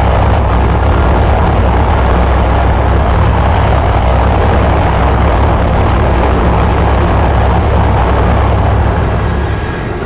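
A low roar of explosions rumbles steadily.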